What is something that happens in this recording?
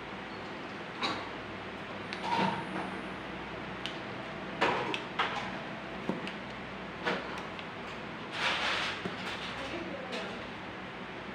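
Hands crinkle and rustle a piece of a plastic bottle.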